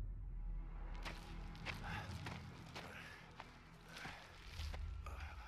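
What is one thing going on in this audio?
Boots crunch on rubble and gravel.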